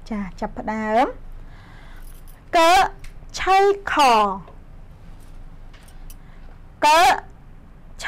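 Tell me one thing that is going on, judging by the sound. A young woman speaks clearly and slowly into a microphone, drawing out her words.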